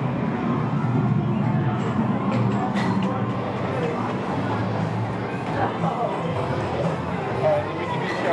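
Men and women chatter indoors at a low murmur.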